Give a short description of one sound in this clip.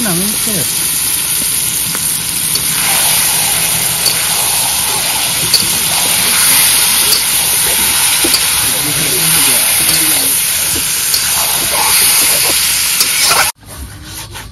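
Food sizzles loudly in hot oil.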